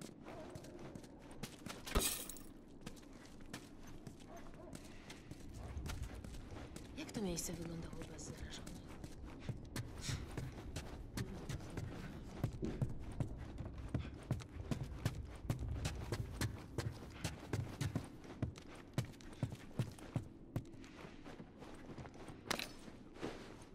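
Footsteps thud on wooden floors and stairs indoors.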